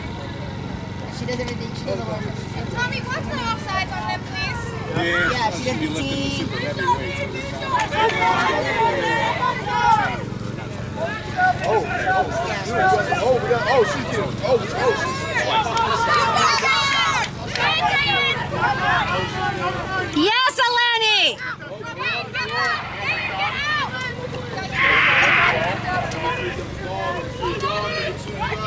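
Young women shout and call out to each other outdoors.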